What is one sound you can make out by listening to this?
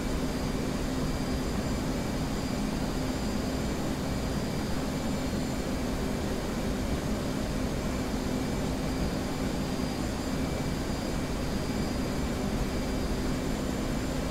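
A jet engine hums and roars steadily.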